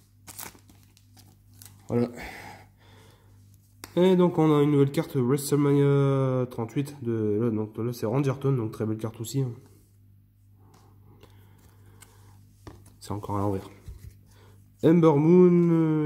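Trading cards flick and shuffle between fingers.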